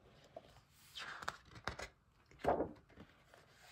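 A large sheet of paper rustles as a page is turned.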